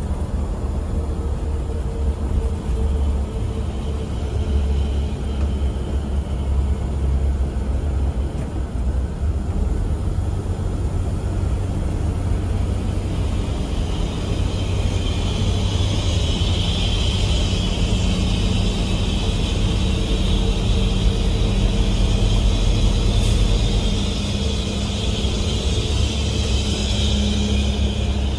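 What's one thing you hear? A diesel engine rumbles steadily inside a moving bus.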